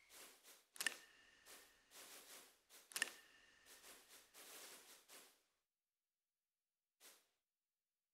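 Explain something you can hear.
Soft chimes ring out a few times.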